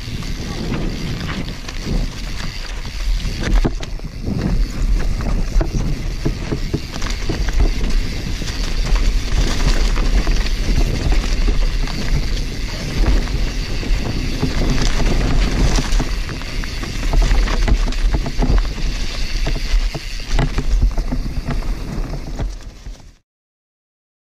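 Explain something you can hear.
Bicycle tyres crunch and skid over dirt and stones.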